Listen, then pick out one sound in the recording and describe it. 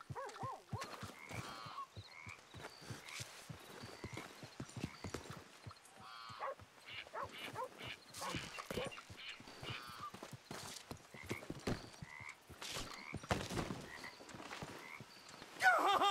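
Boots thud and creak across a wooden floor indoors.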